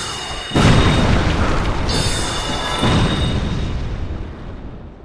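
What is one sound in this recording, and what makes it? A magic spell bursts with a bright whoosh and roar.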